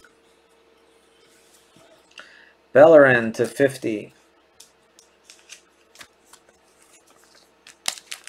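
Cards rustle and tap as hands handle them.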